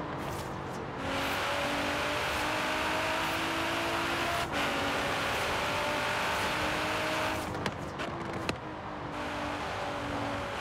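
A sports car engine roars at high speed, its pitch rising through the gears.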